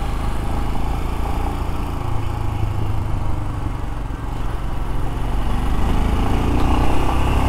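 A motorcycle engine rumbles steadily close by as it rides.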